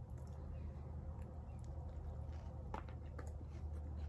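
A young woman chews and bites into food.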